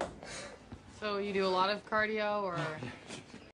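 A young woman speaks pleadingly nearby.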